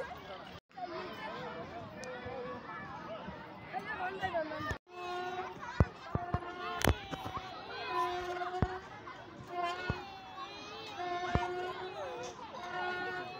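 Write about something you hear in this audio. Children chatter and shout nearby.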